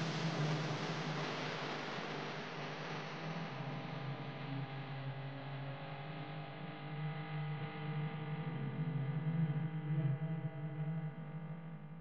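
Wind rushes past loudly, then eases.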